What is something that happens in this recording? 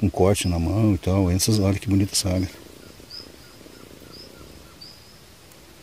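Water trickles softly over rocks.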